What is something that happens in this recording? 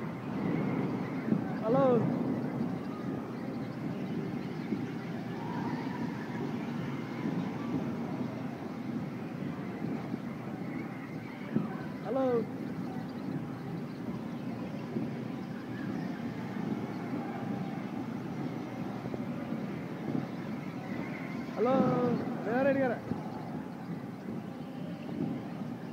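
A fairground ride rumbles steadily as it turns.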